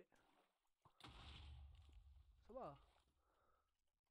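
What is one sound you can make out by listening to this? Water pours and splashes.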